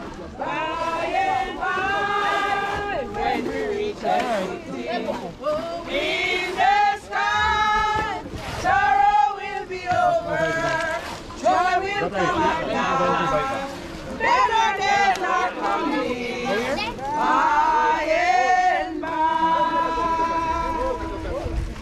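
A crowd of people sings together outdoors.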